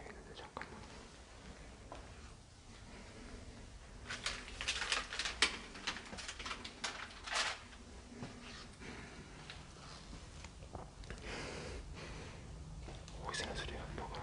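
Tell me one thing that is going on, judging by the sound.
Footsteps scuff slowly across a hard floor.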